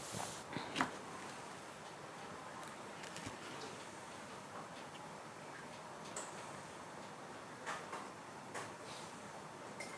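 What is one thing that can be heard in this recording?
A plastic ruler slides and taps on paper.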